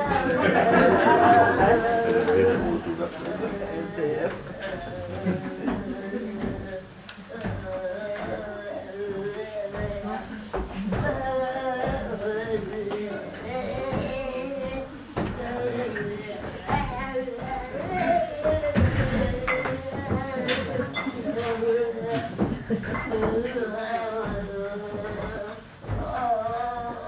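A shopping cart rattles as it is pushed across a stage.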